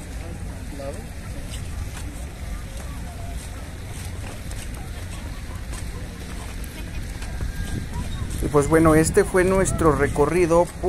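A crowd of people chatters outdoors in the background.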